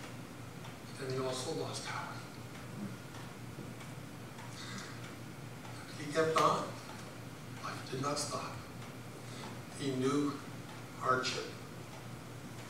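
A man speaks slowly and solemnly through a microphone in an echoing room, with long pauses.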